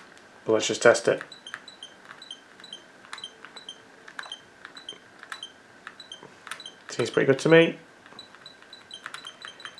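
Buttons click softly on a handheld game console.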